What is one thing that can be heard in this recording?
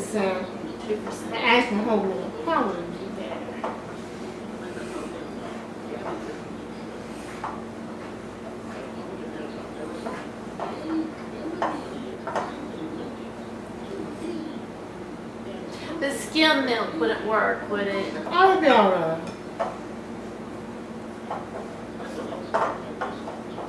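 Hands squish and mix food in a bowl.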